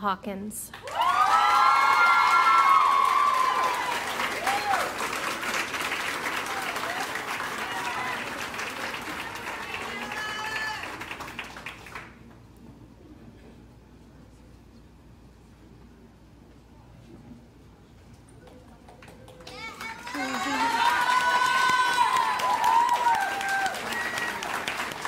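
Audience members cheer and whoop loudly.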